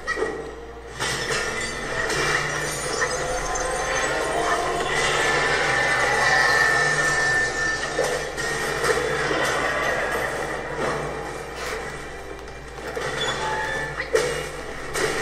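A monster roars and growls loudly.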